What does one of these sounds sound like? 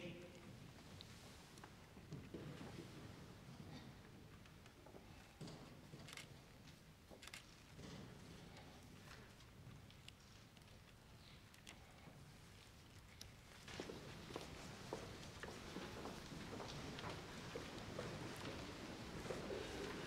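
A large audience shifts and rustles quietly in an echoing hall.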